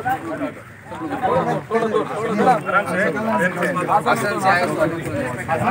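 Several men talk loudly and excitedly close by.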